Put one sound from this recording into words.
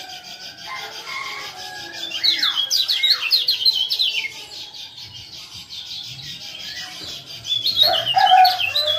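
Caged songbirds chirp and sing in quick, rising and falling bursts.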